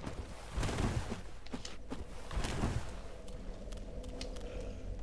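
Armoured footsteps clank on stone.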